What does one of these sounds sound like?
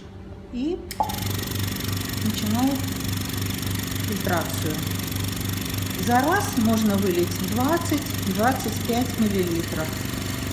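A vacuum pump throbs steadily.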